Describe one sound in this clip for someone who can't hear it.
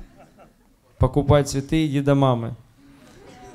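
Men on a panel laugh.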